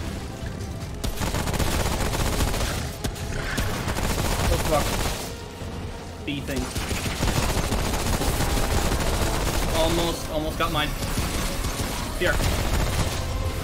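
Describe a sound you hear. Rapid gunfire rattles loudly.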